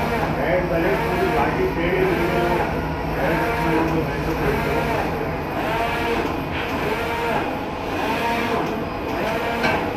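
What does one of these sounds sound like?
A machine motor hums steadily underneath.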